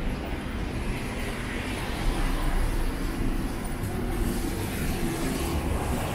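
A bus engine hums as the bus drives past.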